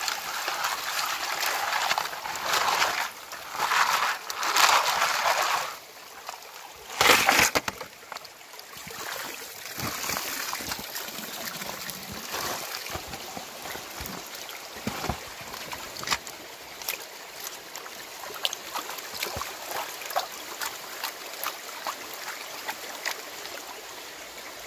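A stream trickles and splashes over stones.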